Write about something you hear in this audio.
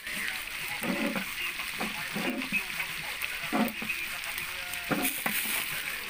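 A spoon stirs and scrapes inside a metal pot.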